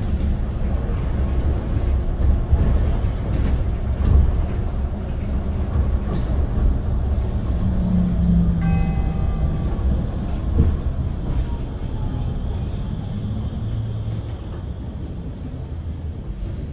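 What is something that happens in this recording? Cars drive past close by.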